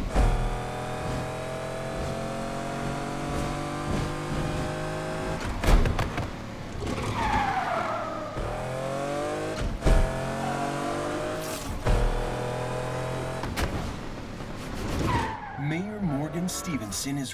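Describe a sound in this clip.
A sports car engine roars, rising in pitch through the gears.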